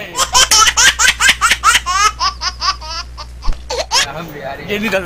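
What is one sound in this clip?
A baby giggles and squeals with laughter in quick bursts.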